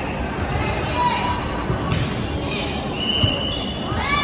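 A volleyball is struck with a sharp slap.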